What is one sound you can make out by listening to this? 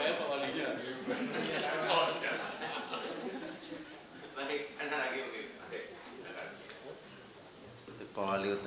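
A man speaks steadily through a microphone in a room.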